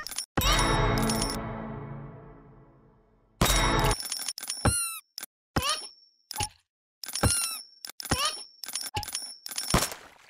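Game sound effects chime and ring as gold is collected.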